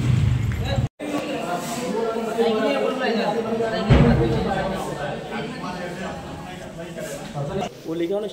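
Several men talk over one another nearby.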